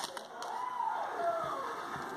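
Stiff cards slide and flick against each other.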